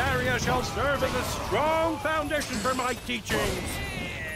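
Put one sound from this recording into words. Fiery explosions burst with a roar.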